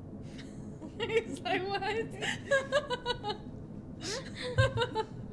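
Young women laugh and talk excitedly close by.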